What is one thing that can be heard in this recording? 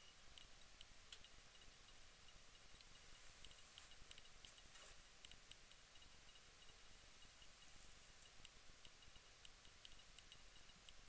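A small electric spark crackles faintly.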